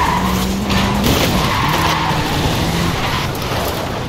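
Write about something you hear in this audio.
A car crashes through a wooden wall with a splintering crash.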